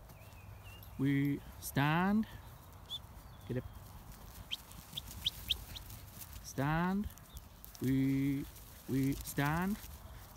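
Sheep bleat close by.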